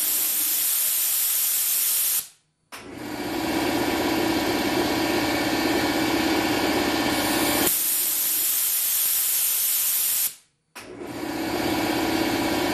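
Air hisses loudly and steadily from a pressure valve, stopping briefly twice.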